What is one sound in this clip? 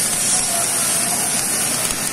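A welding arc crackles and hisses.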